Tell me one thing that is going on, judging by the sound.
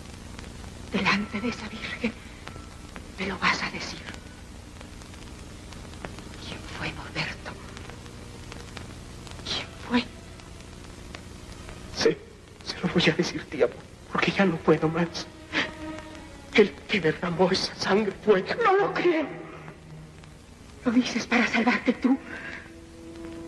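A woman speaks with urgency, close by.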